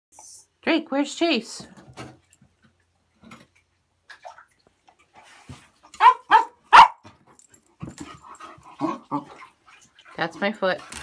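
A dog whines in short, high bursts.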